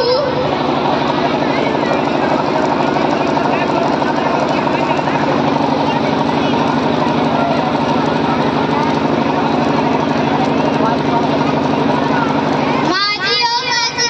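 Loud music plays through loudspeakers.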